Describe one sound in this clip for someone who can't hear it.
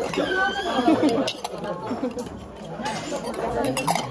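Metal bowl lids clink.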